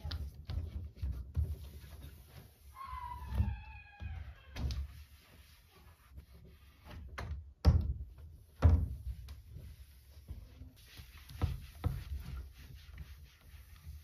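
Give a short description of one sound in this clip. A damp cloth rubs across a wooden cabinet door.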